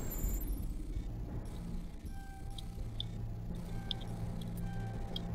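Soft electronic tones hum and beep.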